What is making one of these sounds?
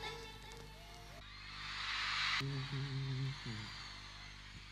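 A man sings into a microphone over loudspeakers in a large hall.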